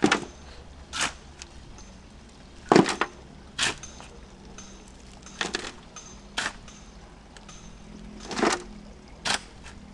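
A metal shovel scrapes and digs into stony soil.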